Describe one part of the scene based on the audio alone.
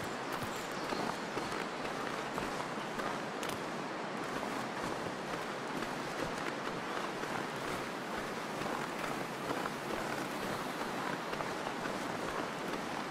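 A strong wind howls steadily across open snow.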